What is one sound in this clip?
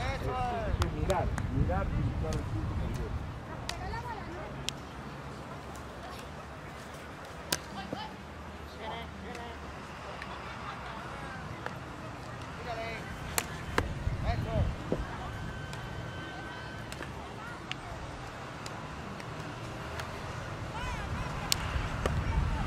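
Hockey sticks click against a ball outdoors.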